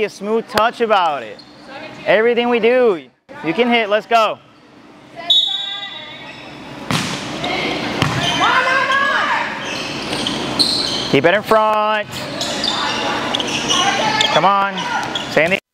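Young women shout and call out loudly in a large echoing hall.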